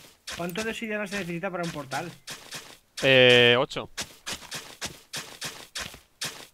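A hoe crunches into grassy soil in short, repeated strokes.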